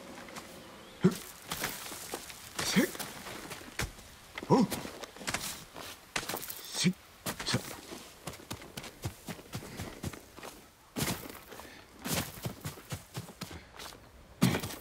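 A climber's hands and feet scrape and thud against rock.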